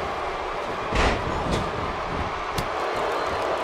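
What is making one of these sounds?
Bodies slam hard onto a wrestling mat.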